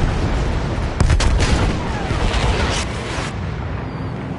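A large explosion booms and rumbles.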